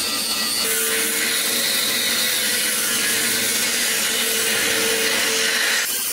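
An angle grinder whines as it cuts through a steel bar.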